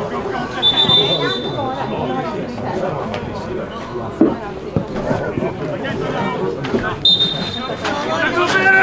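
A referee's whistle blows in short, sharp blasts.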